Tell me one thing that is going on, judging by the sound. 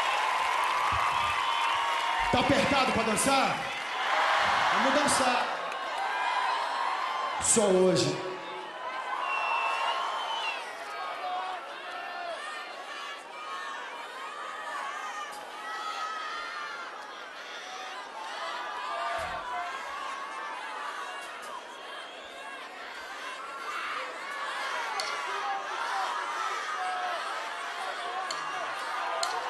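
A crowd cheers and chatters.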